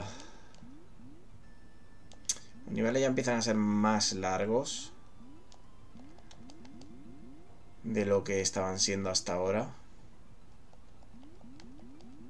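Short rising electronic blips from a retro video game repeat quickly.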